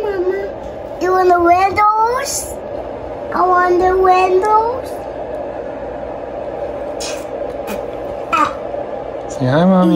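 A young child calls out nearby in a high, sing-song voice.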